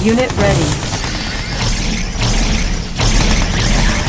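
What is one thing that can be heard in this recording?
Explosions boom and gunfire crackles in a battle.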